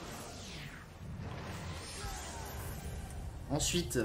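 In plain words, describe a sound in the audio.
A magic spell chimes and shimmers.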